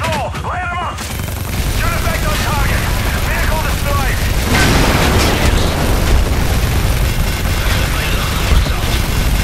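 Heavy cannon fire thumps rapidly.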